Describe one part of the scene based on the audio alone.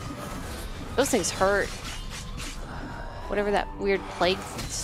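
Magic spells burst and whoosh in a fight.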